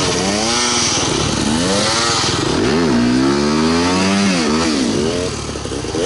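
A motorbike engine revs up and down loudly, close by.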